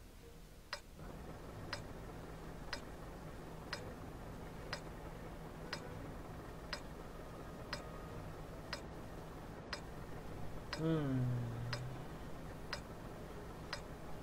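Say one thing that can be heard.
A tank engine idles with a low, steady rumble.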